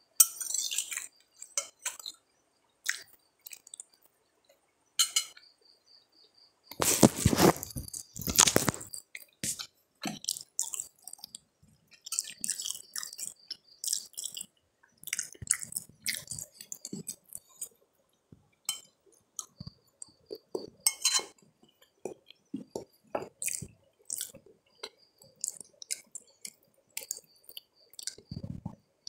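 A metal spoon clinks and scrapes against a plate.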